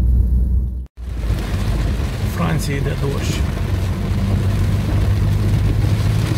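Rain patters on a car's windscreen.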